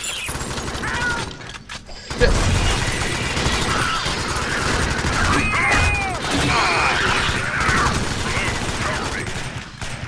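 Creatures screech and shriek.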